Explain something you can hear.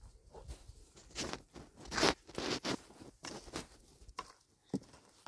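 A shovel scrapes soil into a metal tray.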